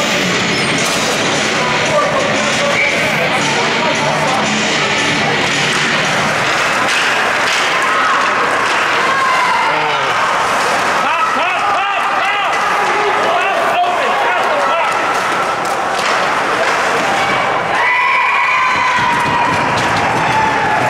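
A crowd of spectators cheers and shouts in a large echoing rink.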